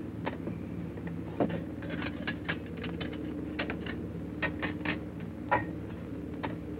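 Glass clinks as drinks are handled.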